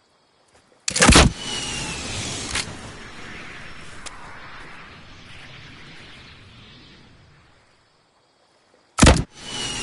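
A rocket launcher fires with a sudden loud blast.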